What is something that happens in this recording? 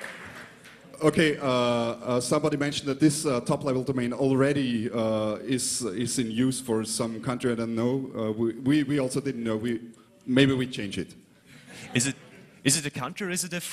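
A young man speaks through a microphone in a large echoing hall.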